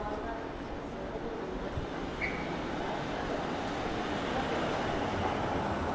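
A car engine hums as a car rolls slowly past close by.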